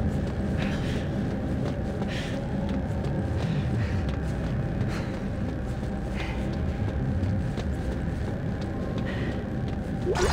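Heavy boots thud on a metal floor at a steady walking pace.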